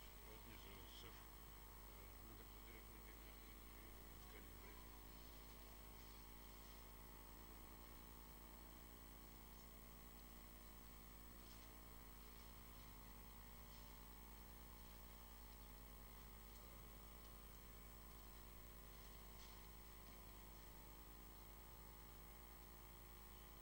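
A man reads aloud in a steady chant through a microphone.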